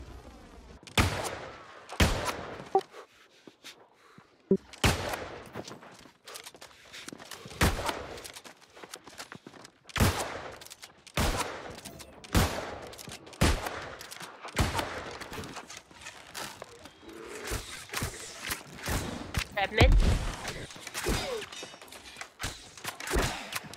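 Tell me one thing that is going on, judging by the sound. Gunshots crack in sharp, irregular bursts.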